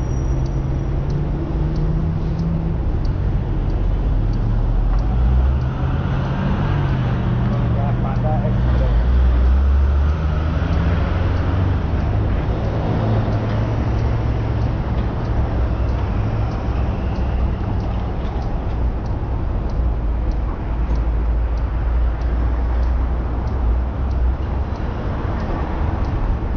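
Strong wind gusts and rumbles against the microphone outdoors.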